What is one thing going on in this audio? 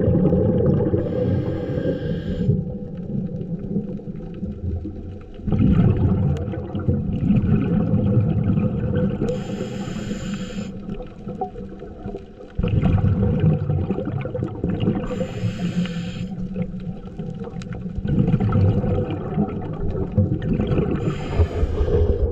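Bubbles gurgle up in bursts close by.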